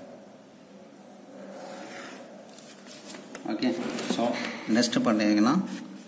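A plastic ruler slides across paper.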